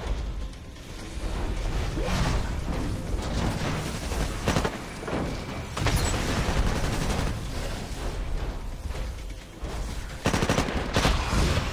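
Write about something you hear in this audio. Explosions rumble.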